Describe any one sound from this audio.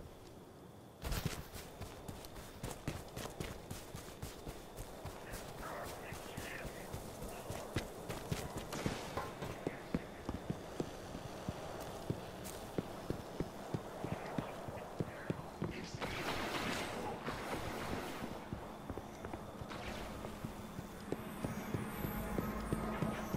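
Footsteps crunch steadily over snow and hard ground.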